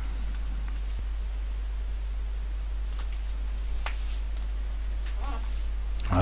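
Paper rustles softly as a hand brushes across a sheet.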